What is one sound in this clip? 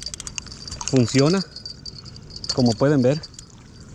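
A fishing reel clicks as its handle is wound.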